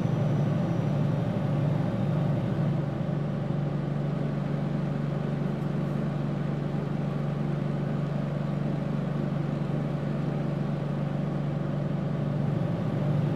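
A bus engine hums steadily while driving along a road.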